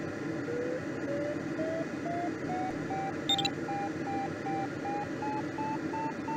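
A glider's variometer beeps repeatedly, its pitch slowly rising.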